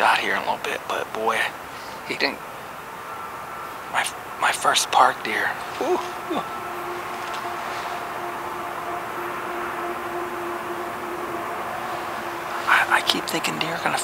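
A man speaks quietly and close up, in a low voice.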